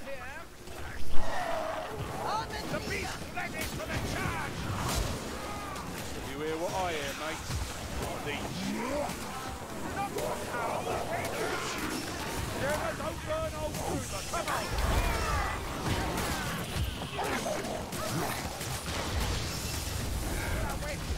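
Fire bursts with loud whooshing blasts.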